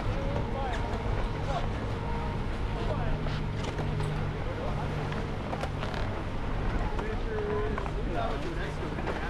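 A crowd of people chatter at a distance outdoors.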